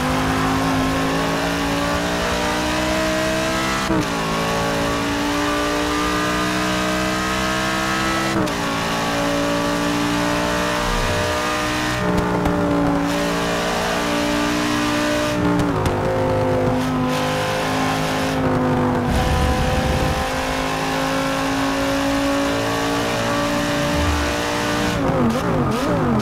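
A race car engine roars at high revs, its pitch climbing and dropping sharply at each gear shift.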